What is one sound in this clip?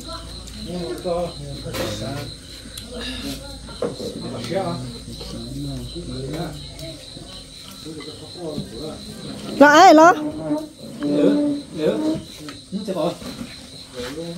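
Several people talk casually and close by.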